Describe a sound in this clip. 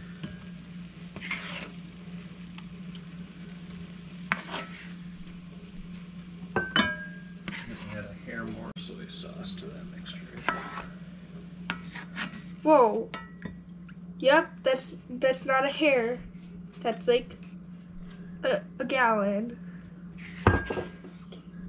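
A metal spoon clinks and scrapes against a pan.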